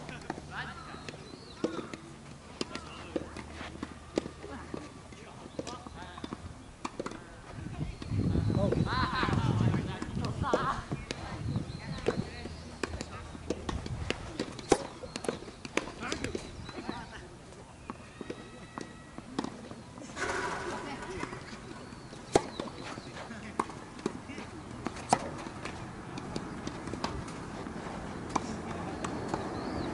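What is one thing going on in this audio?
Tennis balls are struck with rackets, in sharp pops.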